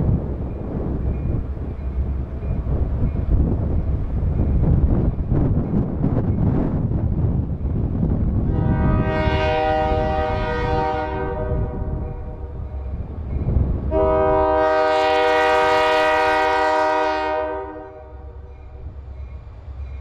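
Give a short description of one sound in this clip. A diesel locomotive rumbles and chugs as it approaches.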